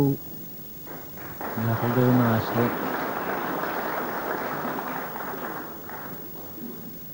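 A snooker cue strikes a ball with a sharp click.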